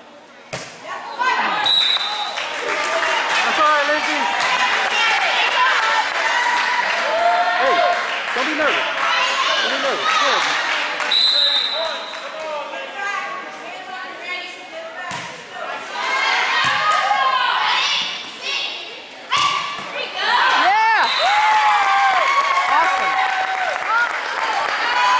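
Young girls cheer and shout excitedly in a large echoing hall.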